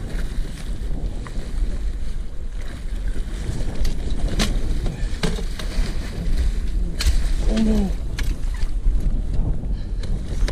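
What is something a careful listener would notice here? A fish thrashes and splashes at the water's surface.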